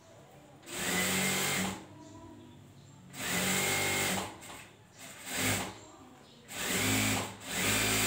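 A sewing machine runs in short, fast bursts.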